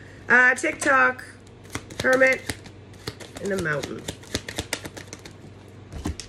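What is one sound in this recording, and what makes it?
Cards shuffle and riffle in a woman's hands.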